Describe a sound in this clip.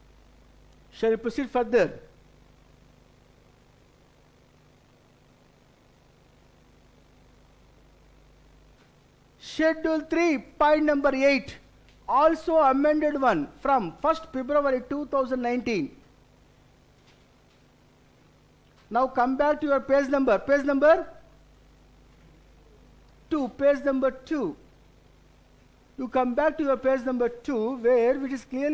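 A middle-aged man lectures calmly into a microphone, pausing between phrases.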